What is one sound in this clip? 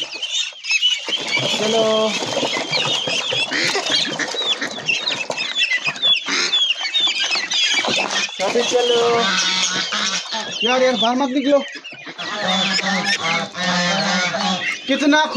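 Ducks quack loudly and often.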